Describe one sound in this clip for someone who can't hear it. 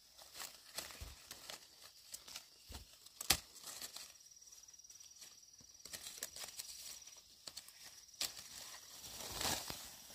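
Leaves rustle and branches shake as fruit is picked by hand.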